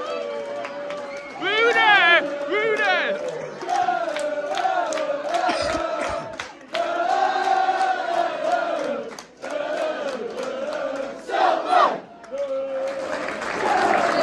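A crowd of young men chants and sings loudly close by, outdoors.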